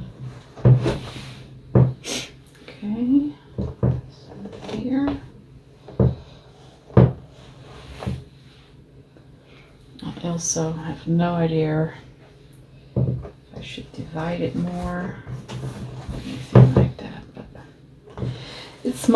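Wool fibres rustle softly as hands stroke and press them on a board.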